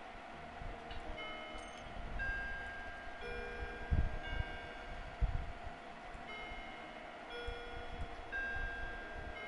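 Short electronic menu chimes ring out.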